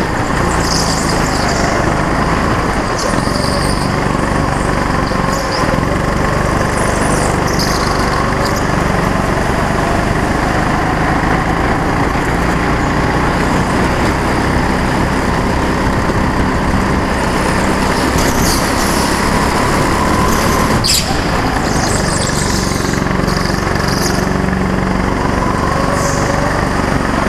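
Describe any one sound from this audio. Tyres squeal on a smooth floor in the turns.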